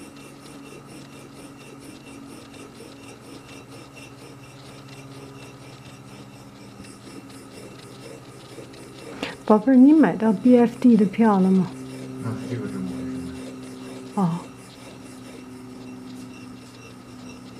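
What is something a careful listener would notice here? An ink stick rubs softly against a wet stone in slow circles.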